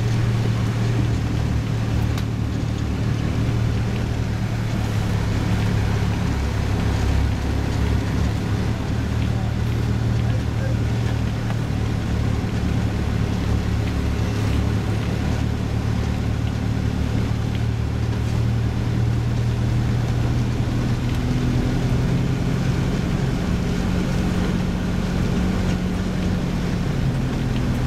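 A vehicle engine hums steadily and low as it drives along.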